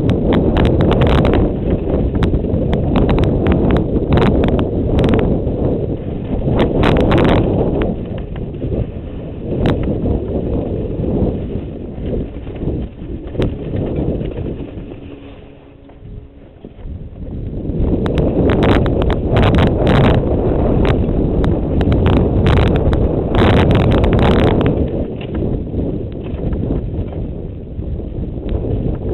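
Bike tyres rattle and crunch over a rough dirt trail.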